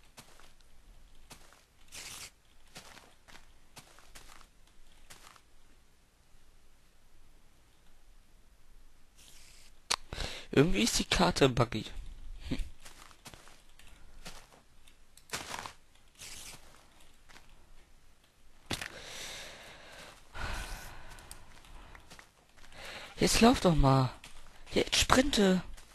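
Footsteps crunch on grass.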